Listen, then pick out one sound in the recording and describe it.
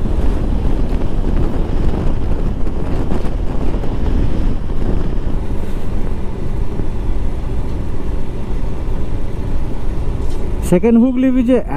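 Wind rushes and buffets loudly past a moving motorcycle.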